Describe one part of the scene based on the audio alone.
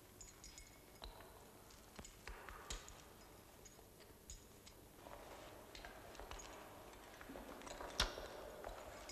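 Metal gear clinks and rattles close by.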